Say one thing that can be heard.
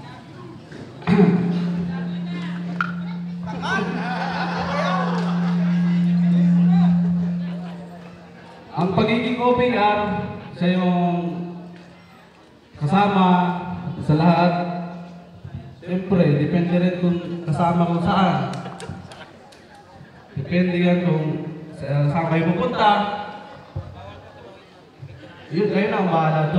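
A man speaks with animation through a loudspeaker outdoors.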